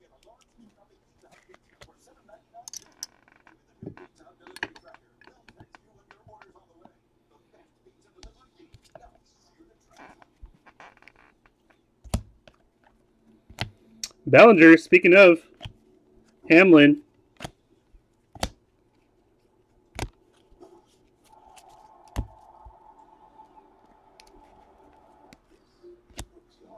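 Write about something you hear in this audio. Trading cards rustle and click softly as hands sort through them.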